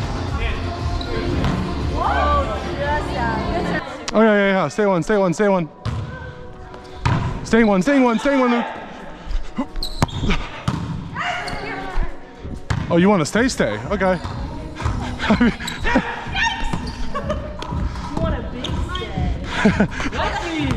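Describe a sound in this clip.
A volleyball is struck with hands in a large echoing gym.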